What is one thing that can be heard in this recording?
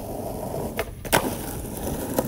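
A skateboard clacks sharply as a skater lands a jump.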